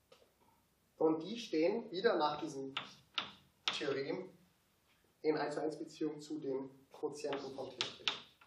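A young man speaks calmly and clearly in a room with a slight echo.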